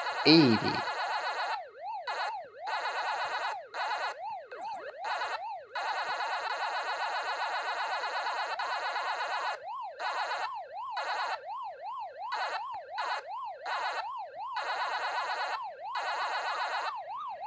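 Quick electronic blips chirp rapidly.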